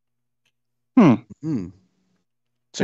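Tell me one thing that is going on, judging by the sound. A man laughs heartily, heard over an online call.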